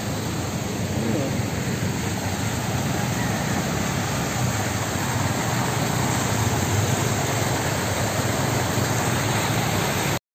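Motorcycle engines idle and rumble in heavy traffic.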